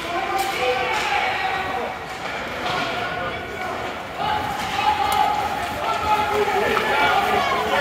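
Skates scrape and hiss across the ice in an echoing arena.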